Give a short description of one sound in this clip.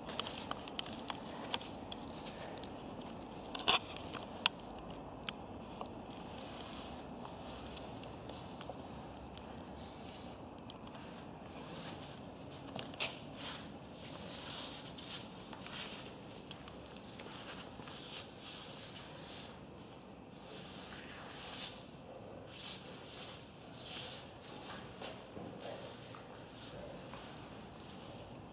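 Bare feet and hands scuff and slap softly on concrete.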